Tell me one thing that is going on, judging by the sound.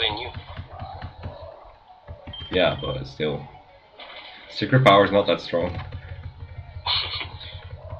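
Electronic video game music plays.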